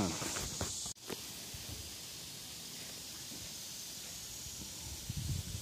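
Leaves rustle softly in a light breeze outdoors.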